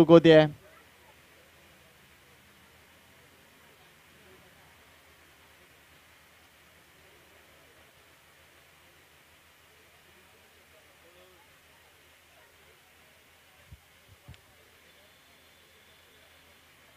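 Men call out faintly across an open field.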